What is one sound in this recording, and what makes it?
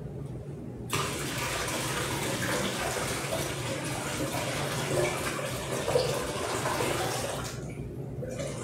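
Water pours from a pitcher into a container.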